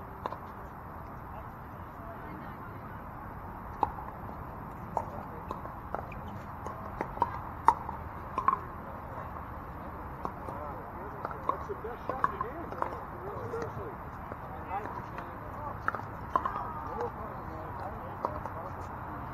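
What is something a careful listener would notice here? Paddles pop sharply against a plastic ball, on and off.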